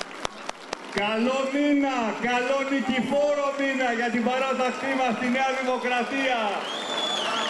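A large crowd chants in unison.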